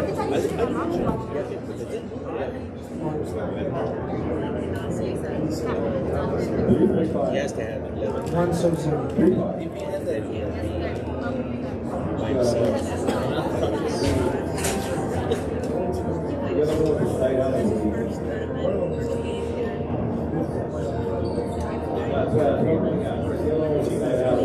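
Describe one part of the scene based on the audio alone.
A crowd of spectators murmurs in the background.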